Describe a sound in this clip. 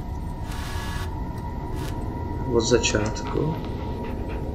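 Videotape static hisses and crackles briefly.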